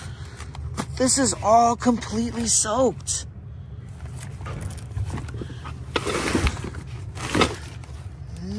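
Papers rustle and crinkle as they are handled close by.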